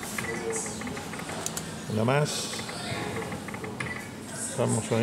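A slot machine plays bright electronic jingles and chimes.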